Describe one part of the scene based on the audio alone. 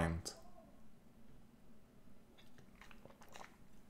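A young man sips from a glass and swallows.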